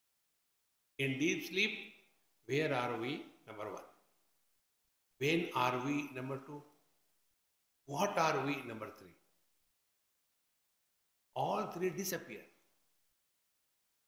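An elderly man speaks with animation into a nearby microphone, in short bursts with pauses.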